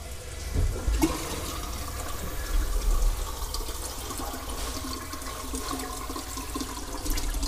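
A stream of liquid splashes into toilet water.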